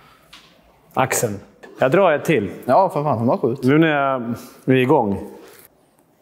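A middle-aged man speaks calmly, close by, in an echoing hall.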